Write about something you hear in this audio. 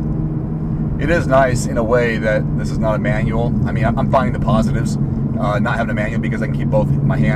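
A man speaks calmly and close by, from inside the car.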